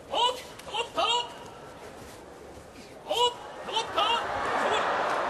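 A man shouts loudly in short calls.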